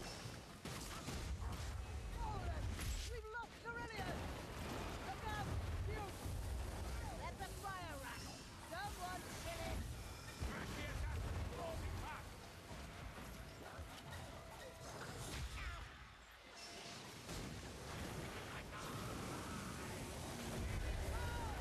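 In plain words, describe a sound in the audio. A heavy flail swings and strikes with dull thuds.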